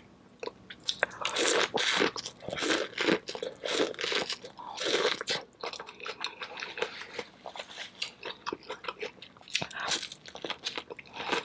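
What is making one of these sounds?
A woman bites into corn on the cob with loud crunches, close to a microphone.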